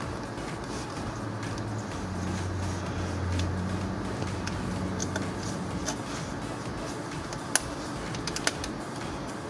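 Metal parts click and clatter as a hand works on an engine.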